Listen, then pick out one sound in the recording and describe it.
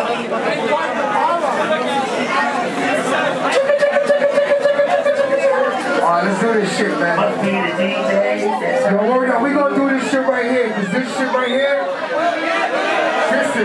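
Loud music with a beat plays through loudspeakers.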